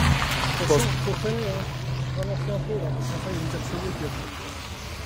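A man talks nearby outdoors.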